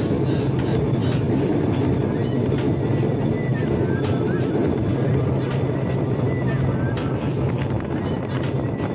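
Metal wheels clack over rail joints.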